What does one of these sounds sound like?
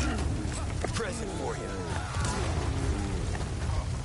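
An explosion bursts with a deep boom.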